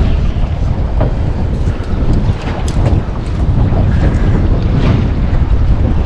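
Wind blows hard across open sea.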